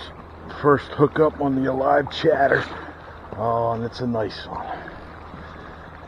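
A fishing reel clicks and whirs.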